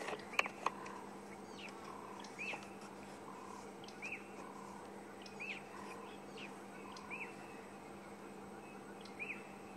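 A leopard pants softly in short, regular breaths.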